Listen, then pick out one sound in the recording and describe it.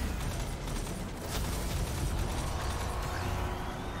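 Explosions rumble and thud.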